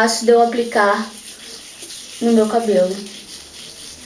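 A young woman speaks briefly and calmly close by.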